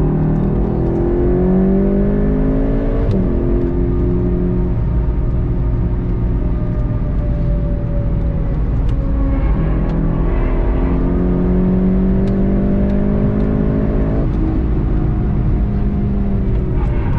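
A car engine roars loudly, rising in pitch and dropping sharply at each gear change.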